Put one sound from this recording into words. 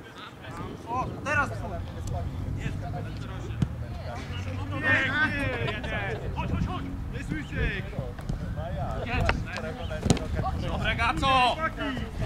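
A ball is kicked with a dull thud.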